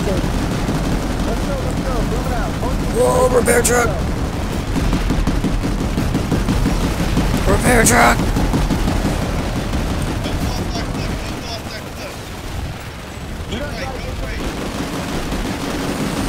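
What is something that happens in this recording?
Heavy vehicle engines rumble and roar steadily.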